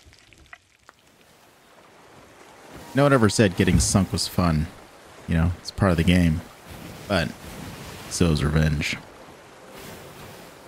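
Sea waves surge and wash against a wooden ship's hull.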